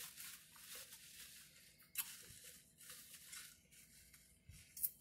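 A woman eats close to a microphone with wet chewing and smacking sounds.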